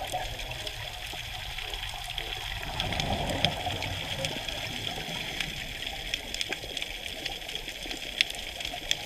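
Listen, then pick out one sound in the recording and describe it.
A scuba diver breathes in through a regulator, heard muffled underwater.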